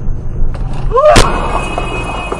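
A vehicle crashes with a loud bang and breaking glass.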